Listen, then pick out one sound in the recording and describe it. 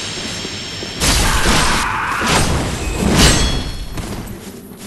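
A sword clashes and slashes in a fight.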